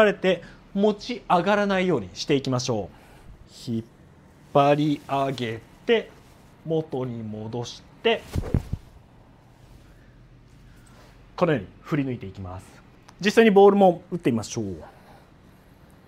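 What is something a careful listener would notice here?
A young man talks calmly and clearly, close by.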